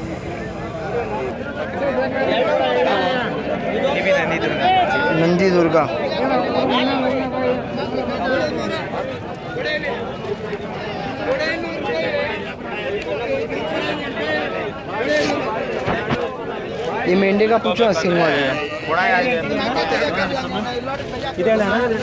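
A crowd of men chatter loudly nearby.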